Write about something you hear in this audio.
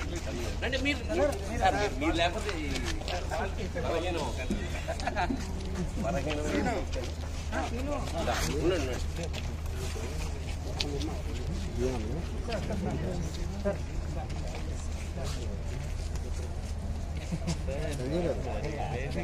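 A crowd of men chatter and call out nearby, outdoors.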